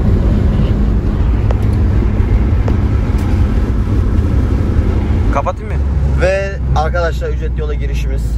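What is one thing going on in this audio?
A car engine and tyres rumble steadily from inside a moving car.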